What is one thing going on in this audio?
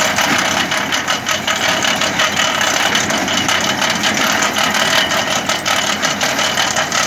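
A digger blade scrapes and rattles through soil and dry stalks.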